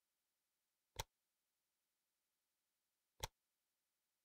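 Soft interface clicks sound.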